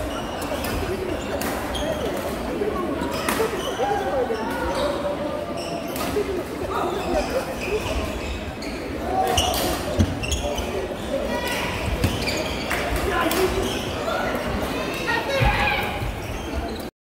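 A large crowd chatters and calls out, echoing through a big hall.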